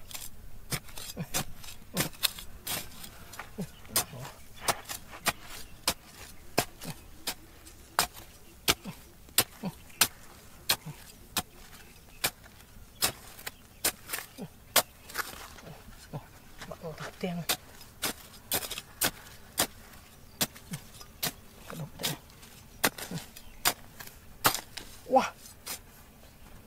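A metal trowel scrapes and strikes into dry, crumbly soil again and again.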